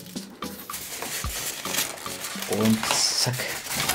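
Foam packaging squeaks and scrapes as a lid is pulled off.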